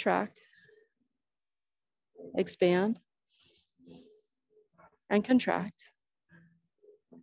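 A young woman talks calmly and clearly, close by, in short bursts.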